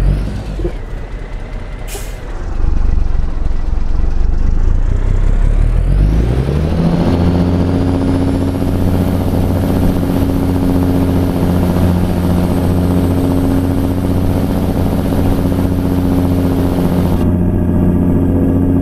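A diesel semi-truck engine rumbles low, then revs up and holds a higher, steady drone.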